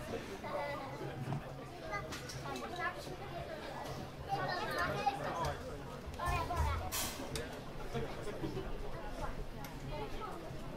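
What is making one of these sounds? Men and women chat nearby in a lively crowd.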